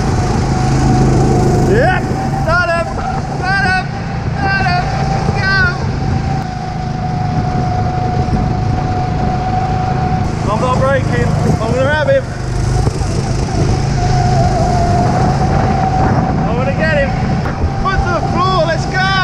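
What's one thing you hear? A go-kart engine drones steadily up close.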